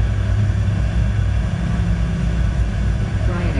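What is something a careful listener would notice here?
A jet engine roars loudly with reverse thrust.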